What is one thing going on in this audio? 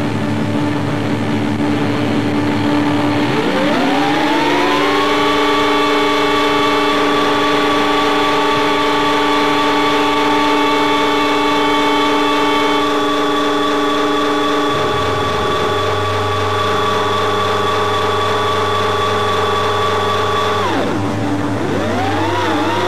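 A rock band plays loudly on stage.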